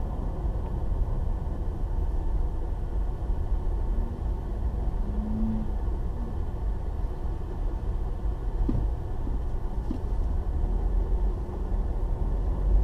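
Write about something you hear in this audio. A car engine hums steadily, with a low road rumble heard from inside the car.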